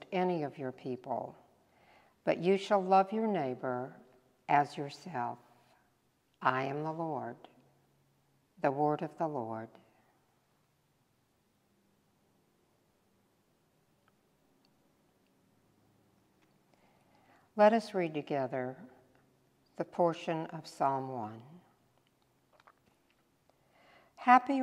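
An elderly woman reads aloud calmly into a microphone, with pauses, in a softly echoing room.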